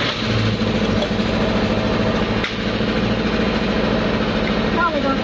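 An engine idles with a steady low hum.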